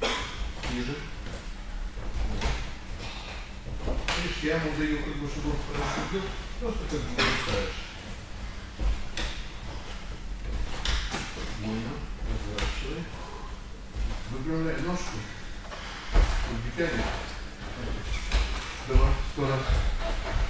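A man speaks calmly, explaining, in a room with some echo.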